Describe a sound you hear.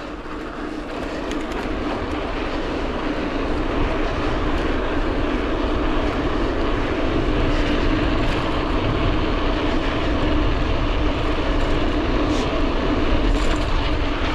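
Wind rushes steadily past the microphone and grows louder.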